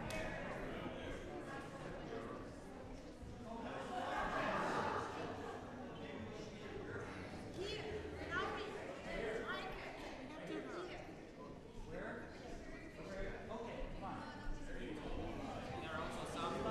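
An orchestra of strings plays in a large echoing hall.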